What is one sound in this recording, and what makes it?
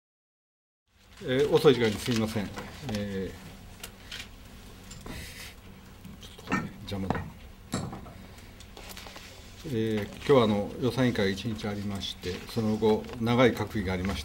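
A middle-aged man speaks calmly and formally into microphones.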